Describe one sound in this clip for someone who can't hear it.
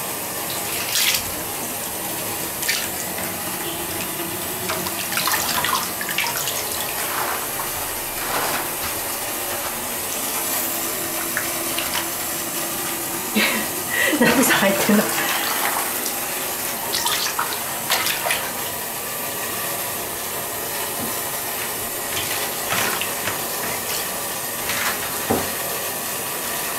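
Water splashes and sloshes in a bathtub.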